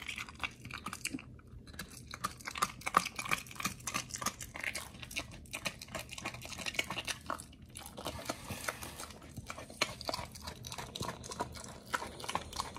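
A dog chews and gnaws wetly close by.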